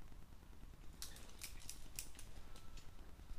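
A climbing rope rattles through a belay device in a few quick clicks.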